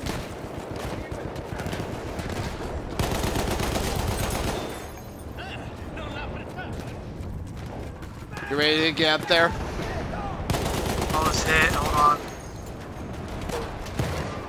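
A gun fires bursts of shots.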